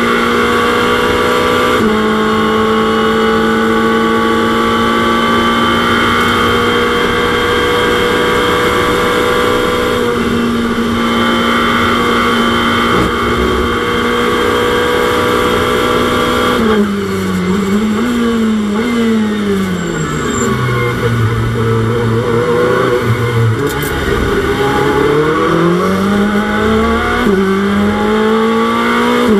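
A race car engine roars steadily at high speed, then drops and rises in pitch as the car brakes and accelerates.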